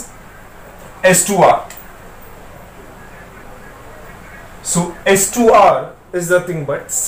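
A young man speaks calmly and clearly, close by, as if explaining.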